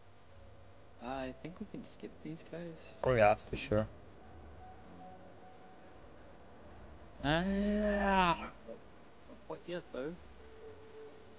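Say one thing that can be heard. A young man talks casually into a close microphone, in short bursts.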